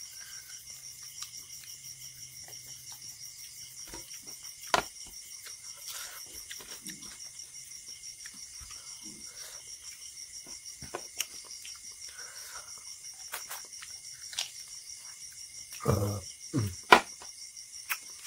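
Fingers squish and mash soft food on a plate, close by.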